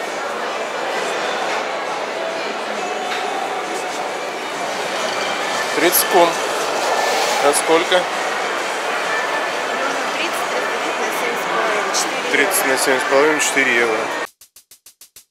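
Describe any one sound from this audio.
A crowd murmurs in a large, echoing hall.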